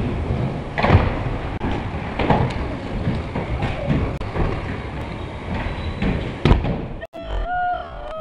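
Scooter wheels roll and rattle on a concrete floor in a large echoing hall.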